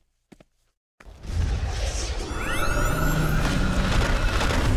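Magic energy crackles and whooshes loudly.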